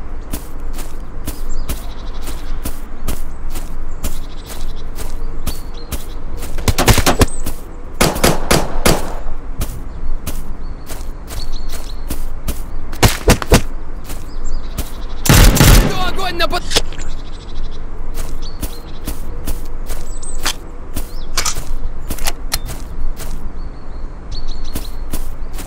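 Guns fire in quick sharp bursts.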